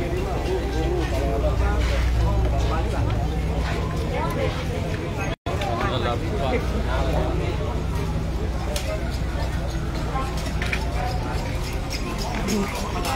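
A crowd of men and women talk and shout excitedly nearby, outdoors.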